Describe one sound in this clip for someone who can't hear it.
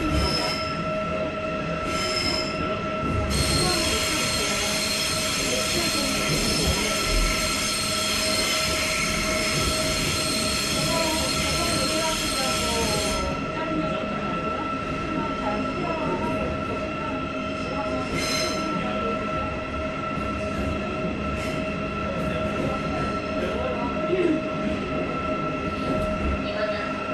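A subway car rumbles and hums along the track.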